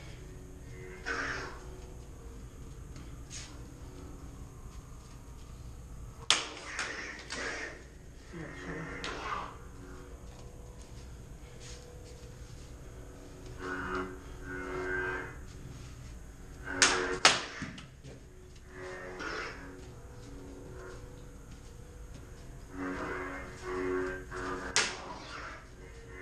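Electronic humming swooshes sound from toy swords as they swing.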